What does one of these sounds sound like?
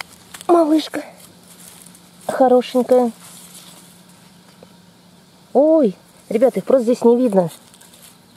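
Dry leaves rustle under a hand.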